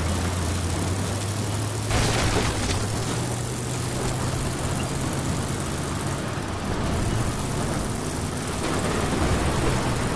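Tyres crunch and rumble over bumpy dirt.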